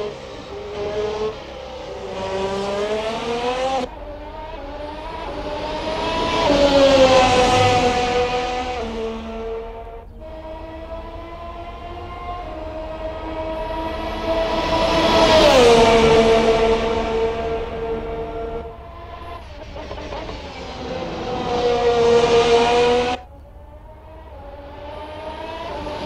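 A racing car engine screams at high revs, rising and falling in pitch as it speeds past.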